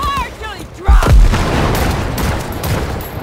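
A shotgun blasts.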